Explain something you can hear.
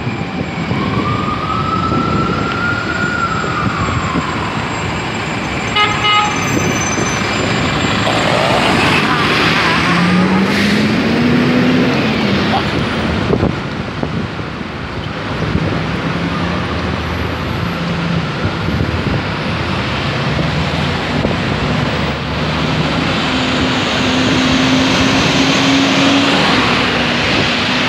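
Busy city traffic rumbles steadily outdoors.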